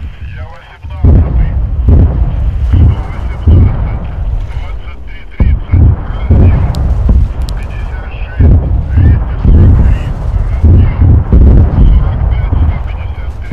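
Distant guns boom and thud across the sea.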